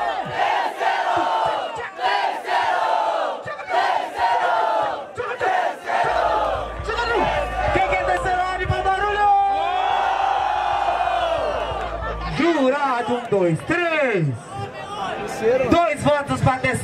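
A young man raps loudly and fast into a microphone, heard through a loudspeaker, outdoors.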